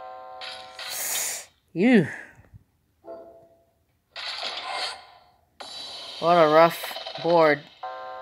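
Game sound effects chime and whoosh in short bursts.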